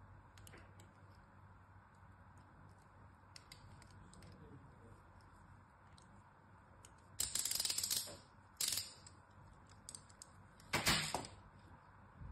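Pieces of soap scrape and crumble off a stick.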